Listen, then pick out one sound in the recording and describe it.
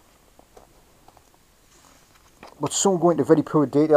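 A page of a book is turned with a soft rustle.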